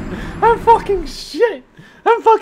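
A man laughs loudly into a close microphone.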